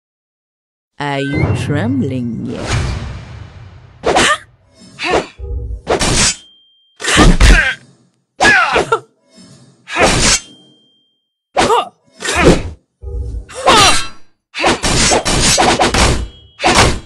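Weapons clash and strike in a fast fight, with bursts of hits and swooshes.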